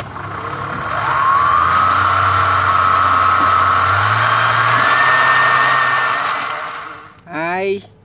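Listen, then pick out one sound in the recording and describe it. A small electric motor whines, rising in pitch.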